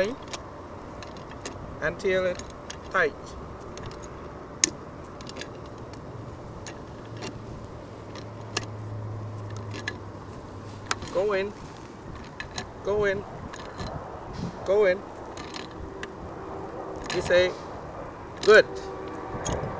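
A pipe cutter clicks and scrapes as it turns around a metal pipe.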